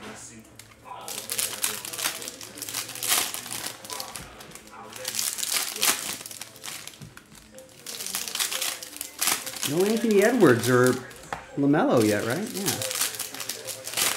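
Foil card packs crinkle and rustle as they are torn open.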